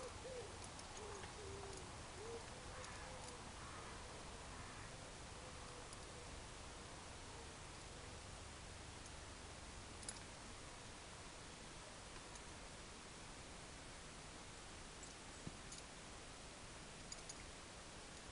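Buckles and metal fittings of a bridle clink softly.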